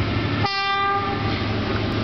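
A train horn sounds in the distance.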